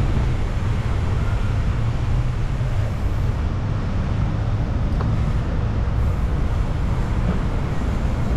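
Wind rumbles loudly past a moving rider outdoors.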